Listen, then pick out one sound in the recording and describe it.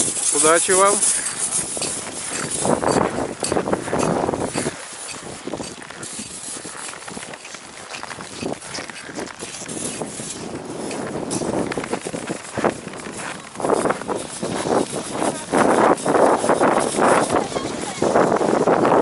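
A person scrapes and chips at packed snow.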